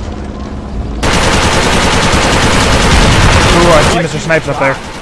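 A heavy explosion blasts nearby.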